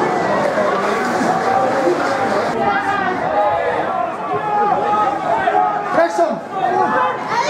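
A small crowd of spectators shouts and chatters outdoors.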